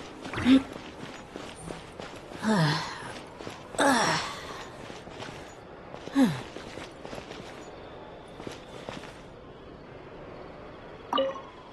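Footsteps patter on stone as a game character runs.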